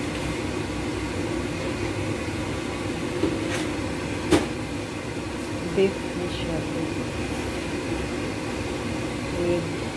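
Meat sizzles and crackles in hot oil in a pan.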